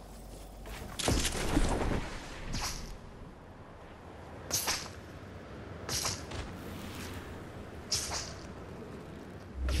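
Wind rushes past in loud whooshing gusts.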